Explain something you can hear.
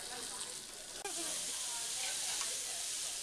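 Meat sizzles loudly on a hot grill.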